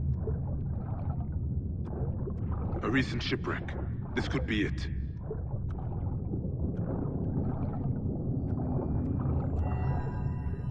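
Water rumbles in a low, muffled underwater drone.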